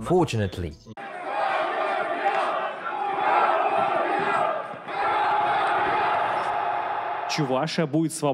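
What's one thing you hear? A large crowd chants together outdoors.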